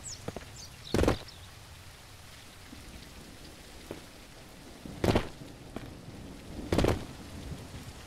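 Heavy thumps land on a wooden crate.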